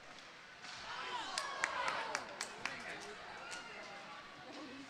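Hockey sticks clack against a puck with sharp knocks.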